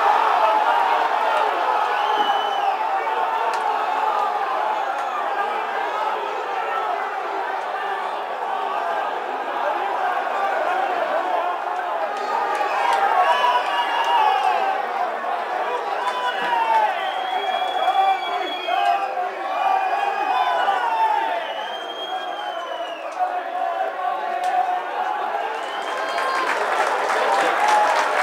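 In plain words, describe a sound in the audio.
A large crowd cheers and chants loudly in an open stadium.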